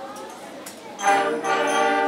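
A concert band starts to play loudly.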